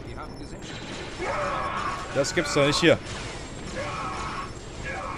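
Laser blasters fire in quick bursts.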